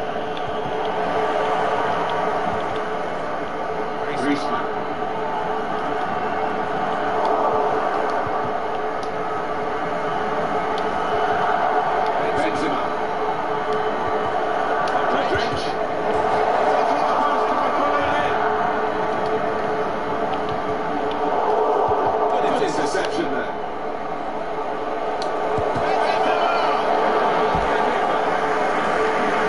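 A large stadium crowd roars and cheers steadily, swelling and fading.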